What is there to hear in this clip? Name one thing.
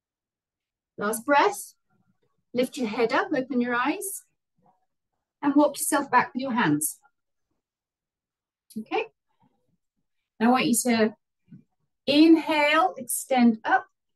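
A young woman speaks calmly and clearly close by, with pauses between phrases.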